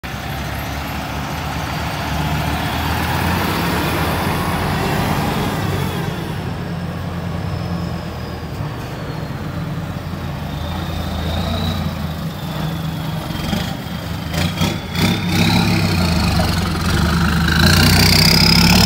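A diesel truck engine idles and rumbles nearby.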